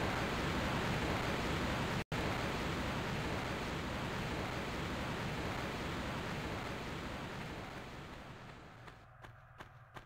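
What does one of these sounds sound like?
A waterfall rushes loudly nearby, slowly fading away.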